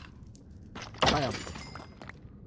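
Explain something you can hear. A sword strikes a bony creature with a sharp crack.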